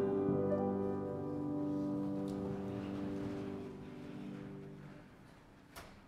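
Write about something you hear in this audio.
A man sings a hymn loudly, held out to a long final note that fades.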